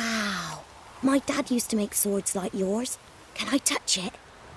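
A young boy speaks excitedly and asks a question.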